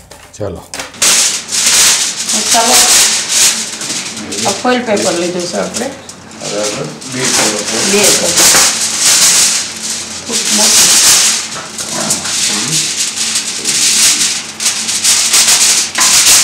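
Plastic foil crinkles and rustles loudly.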